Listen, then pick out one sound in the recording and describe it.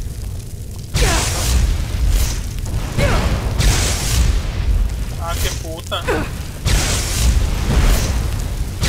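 Flames roar and burst loudly.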